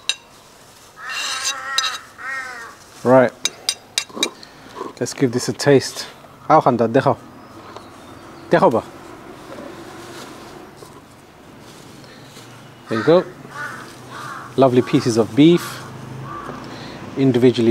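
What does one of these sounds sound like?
A man talks nearby, calmly.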